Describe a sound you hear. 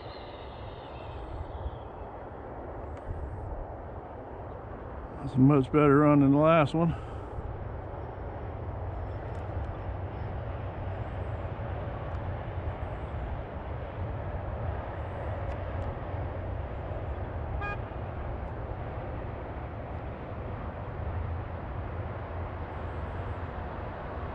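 Tyres hum steadily on asphalt.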